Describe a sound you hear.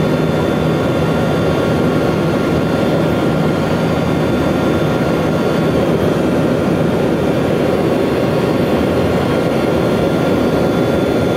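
Aircraft engines drone loudly and steadily inside a cabin.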